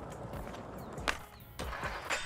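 A skateboard clacks sharply as it pops into a trick.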